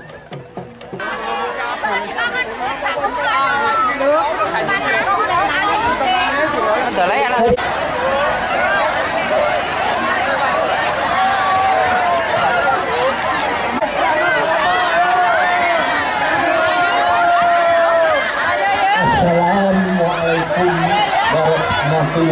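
Women and men in a crowd cheer and shriek excitedly.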